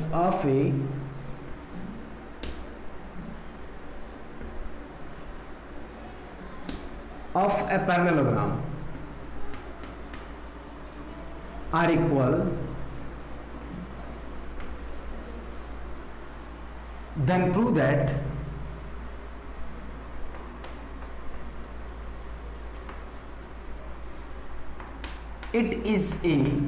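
Chalk scratches and taps on a board.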